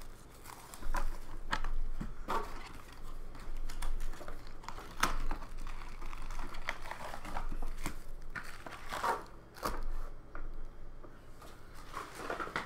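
Cards tap and slide on a wooden table.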